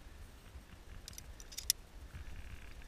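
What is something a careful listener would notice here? Metal carabiners clink against each other.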